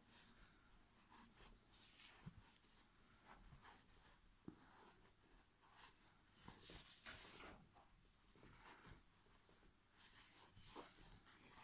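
Hands rustle and squeeze soft stuffing close by.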